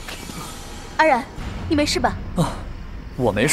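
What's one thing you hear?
A young woman asks a question gently and with concern.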